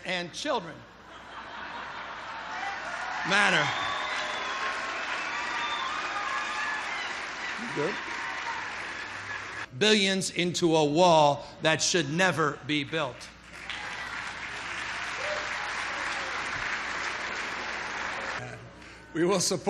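A large audience cheers and applauds.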